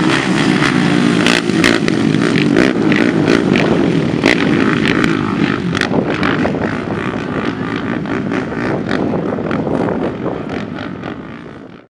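Quad bike engines buzz and roar as they race over dirt.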